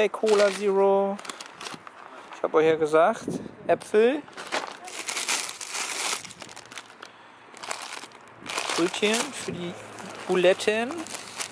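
Plastic wrapping crinkles and rustles as groceries are handled.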